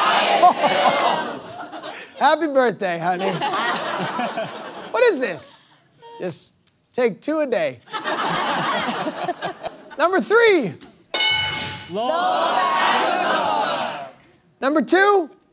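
A small crowd cheers and claps.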